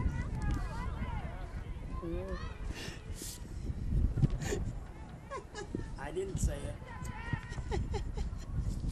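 Young women shout and call to each other across an open outdoor field.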